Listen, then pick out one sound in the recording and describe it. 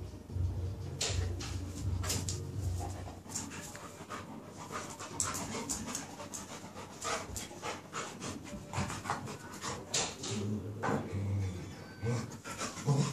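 Dog paws scratch and tap on a tiled floor.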